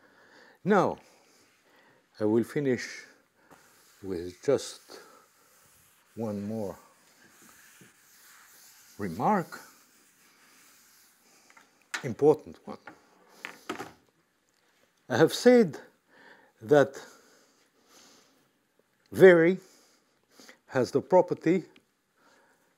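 An elderly man speaks calmly in short phrases with pauses, through a microphone.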